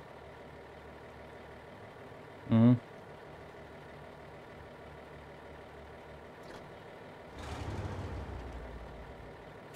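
A truck engine rumbles low.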